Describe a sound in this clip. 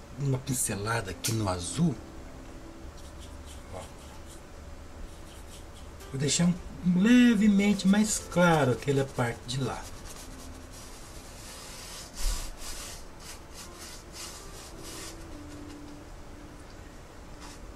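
A brush scrapes softly across a canvas.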